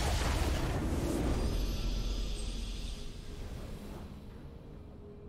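A triumphant victory fanfare swells and fades.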